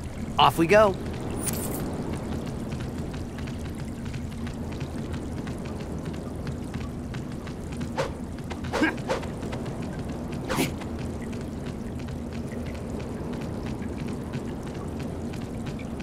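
Quick footsteps patter on stone as a game character runs.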